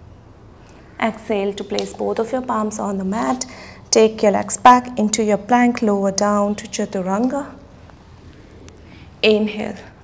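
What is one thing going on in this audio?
A young woman speaks calmly and clearly, as if giving instructions, close to a microphone.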